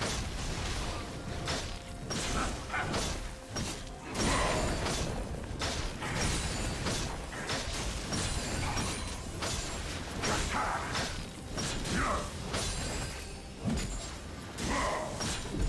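Game spell effects crackle and burst in quick succession.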